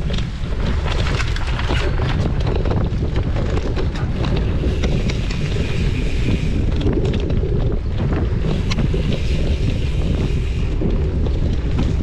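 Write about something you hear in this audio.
Wind rumbles steadily over a moving bike.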